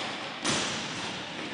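A hockey stick sharply strikes a ball.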